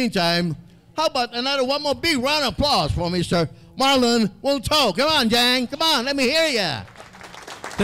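An elderly man sings loudly into a microphone.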